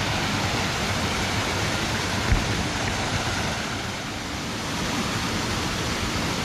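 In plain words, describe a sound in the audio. Water pours steadily over a weir and splashes into a pool.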